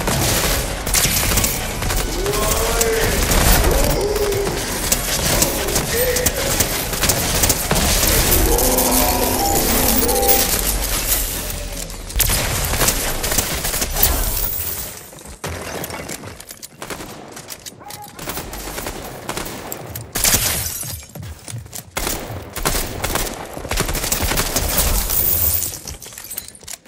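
Rapid gunfire bursts out again and again.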